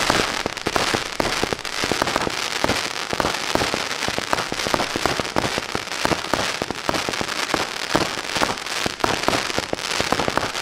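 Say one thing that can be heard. Sparks hiss and crackle steadily.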